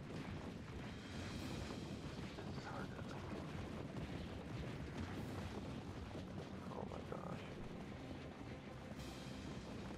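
Light cartoon footsteps patter across a hard floor.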